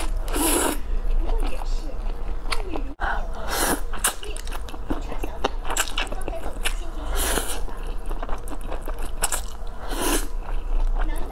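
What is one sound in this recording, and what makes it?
A young woman slurps noodles loudly and close up.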